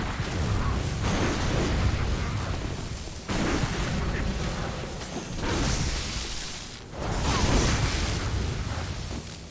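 A heavy blade whooshes and strikes with loud clashing blows.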